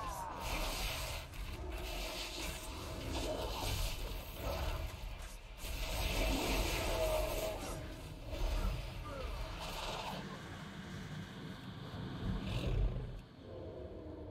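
Spell effects whoosh and blast in a fast fight.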